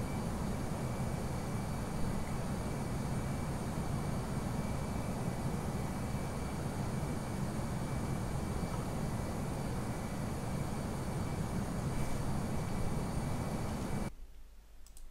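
A jet engine drones steadily in the cockpit.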